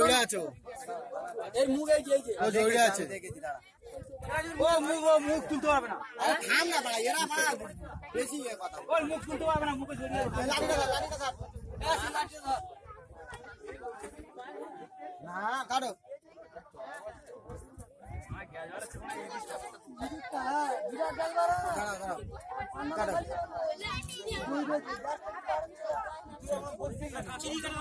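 A young man talks loudly and excitedly close by.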